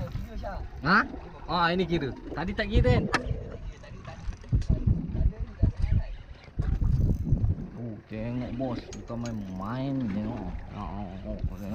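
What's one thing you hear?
A spinning reel is cranked as a fishing line is reeled in.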